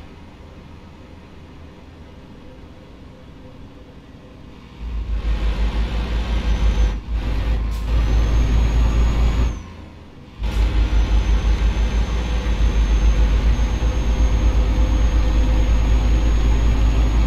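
A truck engine rumbles steadily, growing louder and throbbing as it speeds up.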